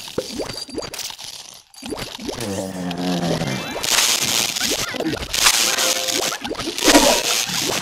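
Cartoonish video game sound effects zap, pop and crackle.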